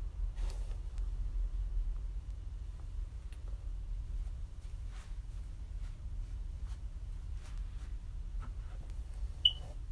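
Hair rustles softly as hands handle and brush it close by.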